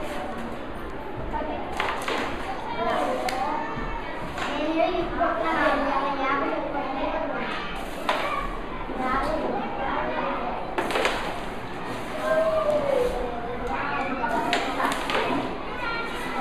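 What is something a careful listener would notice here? Young boys talk and call out close by.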